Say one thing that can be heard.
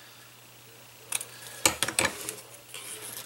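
Scissors snip through thin cord.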